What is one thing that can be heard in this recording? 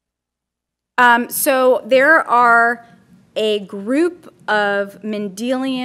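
A woman speaks into a microphone over loudspeakers in a large room.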